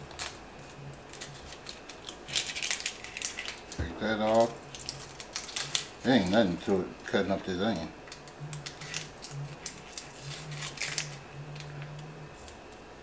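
Dry onion skin crackles as it is peeled off.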